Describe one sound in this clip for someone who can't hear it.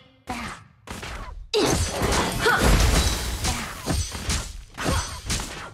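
Magic spells whoosh and crackle in quick bursts during a fight.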